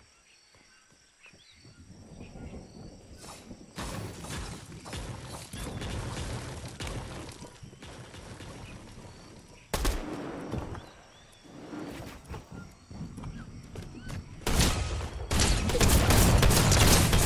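Wooden walls and ramps are built with quick knocking thuds.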